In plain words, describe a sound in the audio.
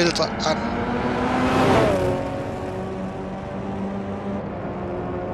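A racing car engine roars past and fades into the distance.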